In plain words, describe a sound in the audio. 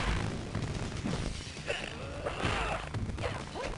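A body crashes down onto the ground with a thump.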